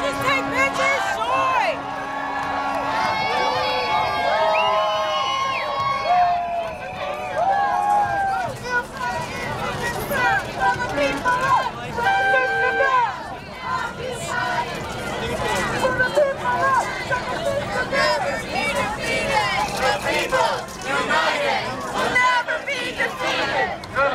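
A large crowd of men and women chants and shouts outdoors.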